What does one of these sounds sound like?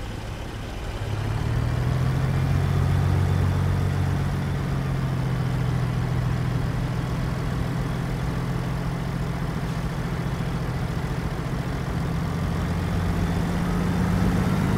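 A heavy truck engine rumbles and revs up as the truck drives off slowly.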